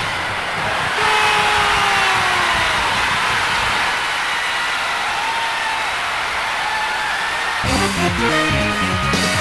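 A goal jingle plays with bright electronic tones.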